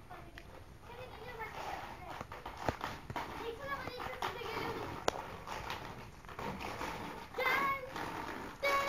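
Inline skate wheels roll on concrete.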